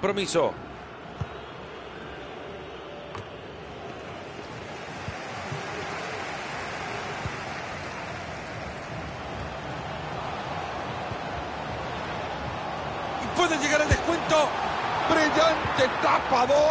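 A large stadium crowd roars steadily and slowly swells louder.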